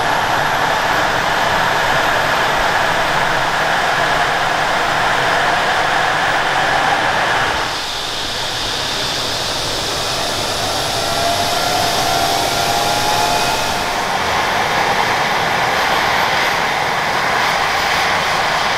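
A helicopter turbine whines loudly nearby, its pitch slowly rising.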